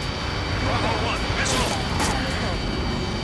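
A missile whooshes past.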